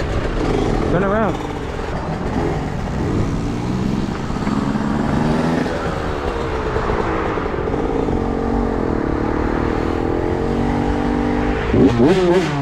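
Cars pass by on the road.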